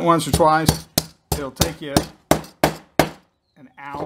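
A hammer taps sharply on metal several times.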